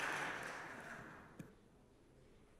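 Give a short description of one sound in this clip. Applause from an audience in a large hall fades away.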